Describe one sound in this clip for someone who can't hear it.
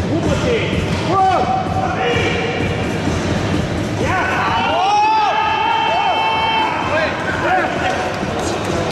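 Men nearby shout encouragement loudly.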